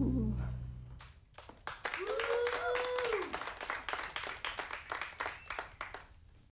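A double bass is plucked in short notes.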